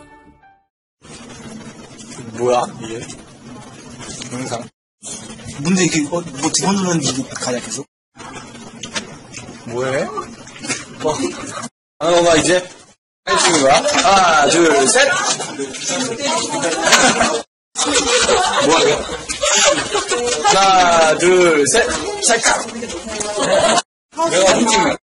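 Young men talk with animation, close by.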